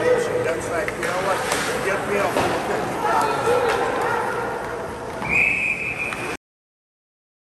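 Spectators chatter and call out in a large echoing hall.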